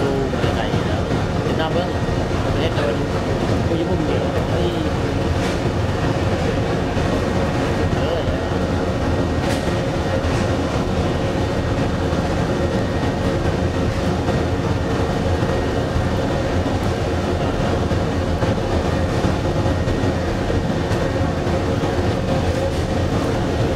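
Fire roars steadily inside a furnace.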